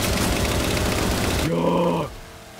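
A mounted machine gun fires a rapid burst.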